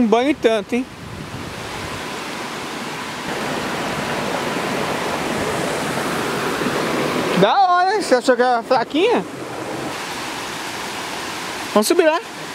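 Water rushes and splashes steadily over rocks nearby.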